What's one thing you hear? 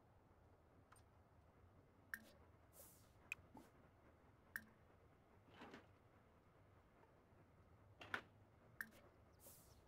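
Soft game menu clicks sound now and then.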